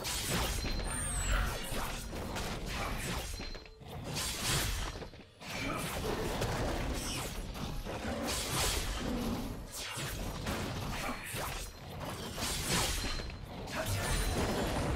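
Weapon blows from a video game strike a monster over and over.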